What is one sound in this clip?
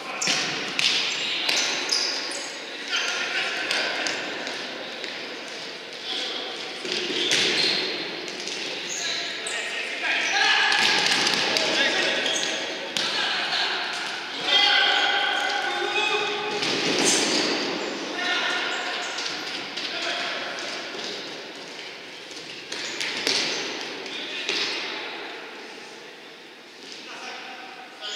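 Players' shoes squeak on a wooden floor in a large echoing hall.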